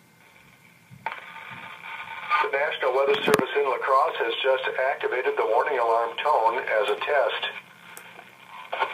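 A radio broadcasts a computer-like voice reading out a message through a small speaker.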